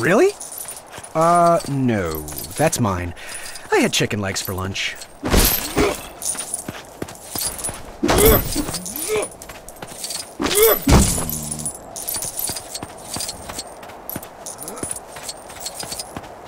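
Small coins jingle and chime as they are picked up.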